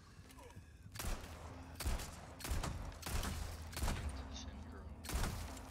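Gunshots fire in quick bursts, loud and sharp.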